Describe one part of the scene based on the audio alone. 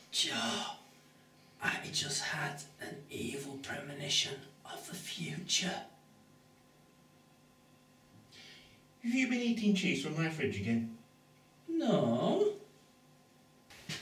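A man speaks close by with strained emotion.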